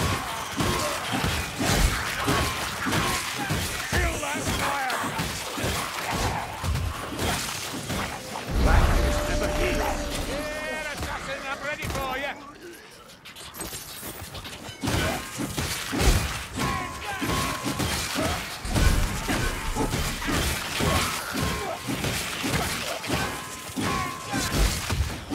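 Melee weapons hack and slash rapidly into a crowd of creatures.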